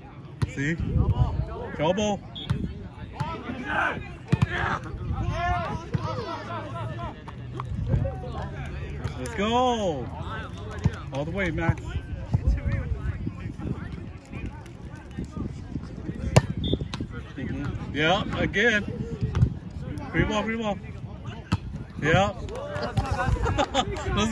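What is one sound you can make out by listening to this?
A volleyball is struck with a slap during a rally.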